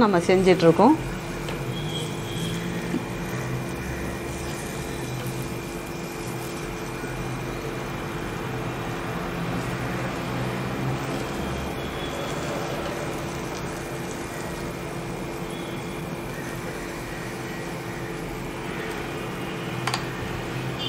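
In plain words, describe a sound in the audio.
Batter sizzles steadily in a hot oiled pan.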